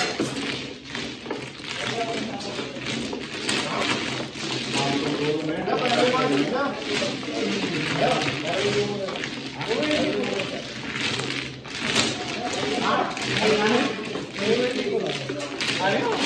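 Plastic tiles clatter and rattle as they are shuffled on a table.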